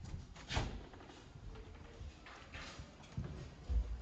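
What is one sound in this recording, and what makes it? A door swings open with a soft thud.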